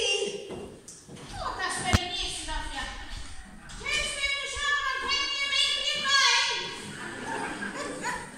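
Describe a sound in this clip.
A woman speaks, heard from across an echoing hall.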